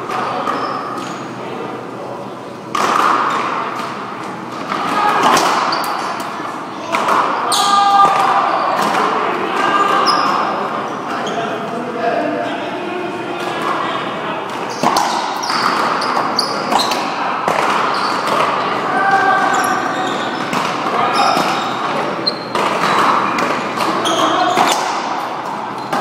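A ball smacks hard against a wall and racquets, echoing through a large hall.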